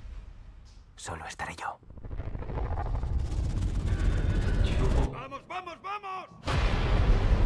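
A young man speaks briefly with surprise, close by.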